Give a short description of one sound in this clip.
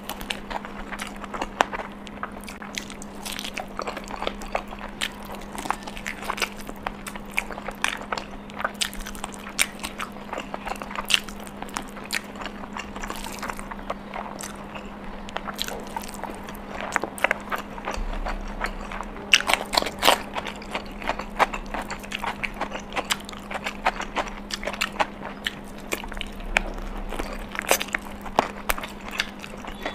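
A young woman chews and smacks her lips close to a microphone.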